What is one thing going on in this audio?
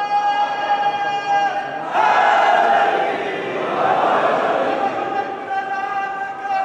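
A young man chants loudly in a sustained, wavering voice through a loudspeaker.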